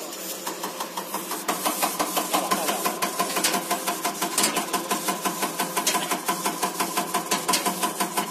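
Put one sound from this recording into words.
A fuel injector ticks rapidly and sharply.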